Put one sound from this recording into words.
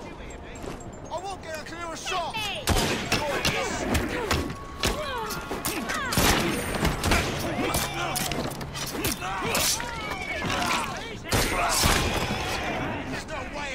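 Fists thud in a brawl with sharp punching impacts.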